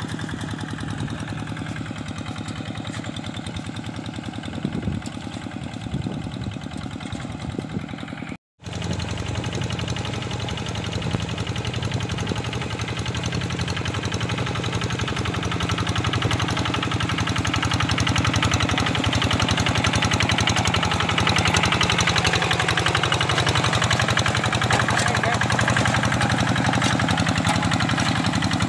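A small diesel engine chugs steadily, growing louder as a hand tractor comes closer.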